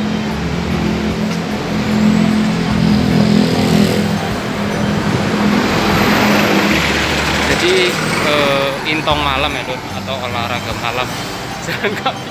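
Street traffic hums in the background.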